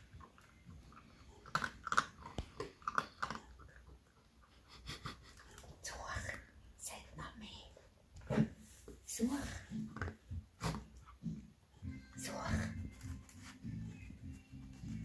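A puppy rustles and scratches at soft fleece bedding.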